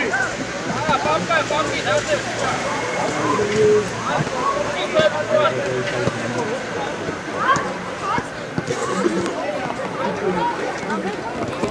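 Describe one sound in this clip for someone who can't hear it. A man shouts instructions from nearby.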